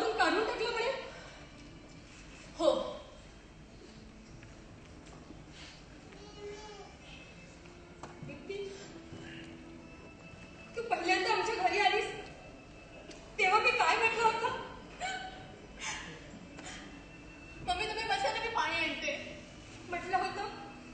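A woman speaks with emotion, heard through a microphone in a hall.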